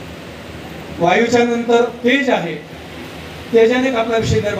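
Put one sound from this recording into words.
A man sings loudly through a loudspeaker, with pauses between lines.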